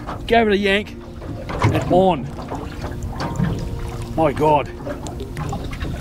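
A fishing reel clicks as it winds in line.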